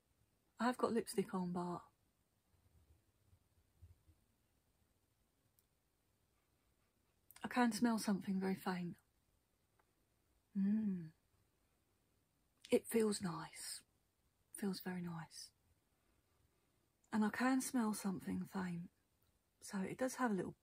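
A woman speaks softly and close to a microphone, in short bursts with pauses.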